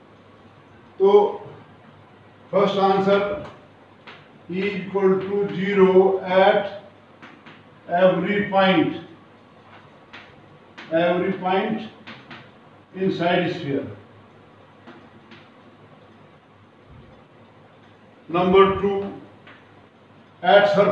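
An elderly man speaks calmly in short phrases, as if explaining.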